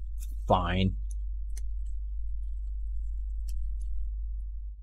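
Small plastic clicks and taps come from work on a keyboard.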